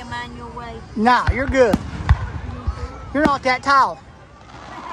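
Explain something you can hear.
Fireworks whistle as they rise.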